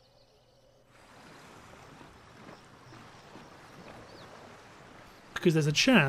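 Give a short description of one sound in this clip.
Waves wash softly against a shore.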